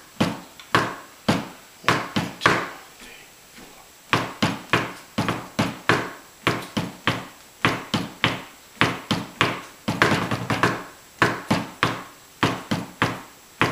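Soft felt mallets strike a drum in a quick, uneven rhythm, each beat ringing briefly.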